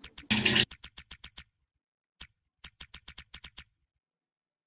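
Short electronic menu clicks tick in quick runs.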